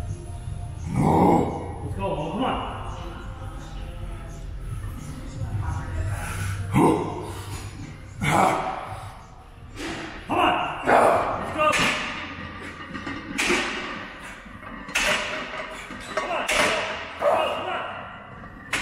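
A man grunts loudly with effort.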